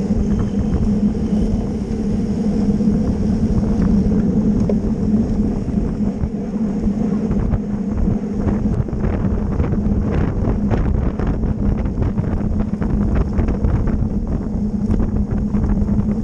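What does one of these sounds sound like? Bicycle tyres hum steadily on smooth pavement.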